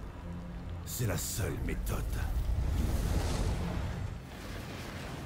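A heavy burst of sand crashes with a deep rumble.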